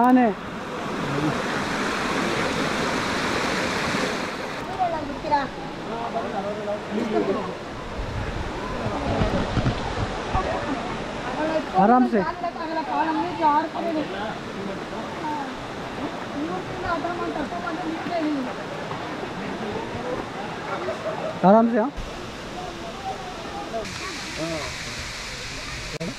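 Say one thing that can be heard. A group of men and women talk nearby outdoors.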